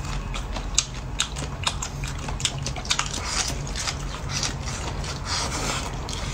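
A man slurps and chews food noisily, close to the microphone.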